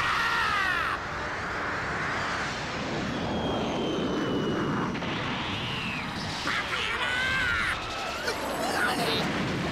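A powerful blast roars and rumbles.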